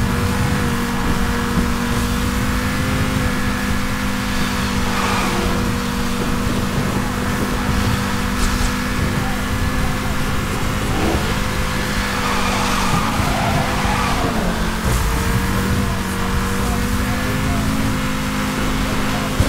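A car engine roars steadily at high speed, dipping briefly before picking up again.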